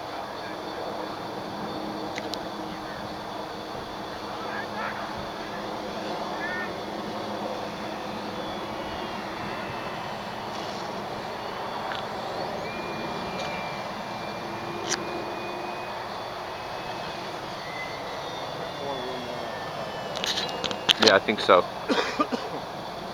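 An electric radio-controlled model plane's motor whines overhead, rising and falling in pitch.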